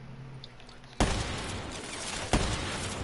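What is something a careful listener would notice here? Loud gunfire bursts in a video game.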